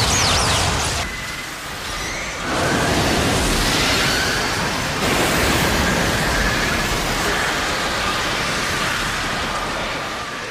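Flames roar loudly and steadily.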